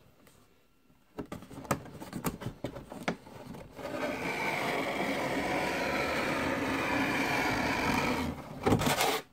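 A clear plastic packaging insert crinkles as it is handled.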